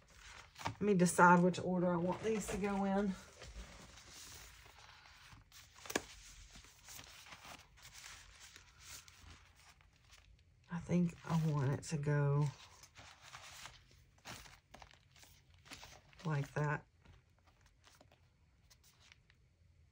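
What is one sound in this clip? Sheets of paper rustle and slide against each other.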